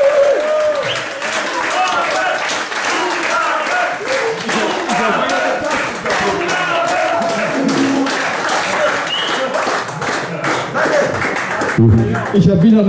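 A live band plays loudly with drums and crashing cymbals.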